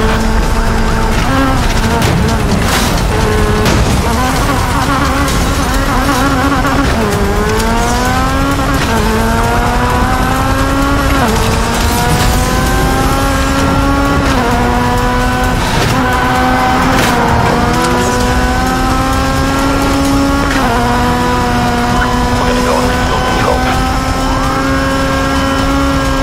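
A car engine roars and revs up through the gears at high speed.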